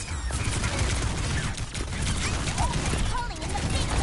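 Gunfire bursts rapidly in a video game.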